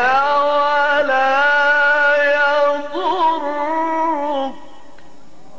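An elderly man chants in long melodic phrases through a microphone and loudspeakers.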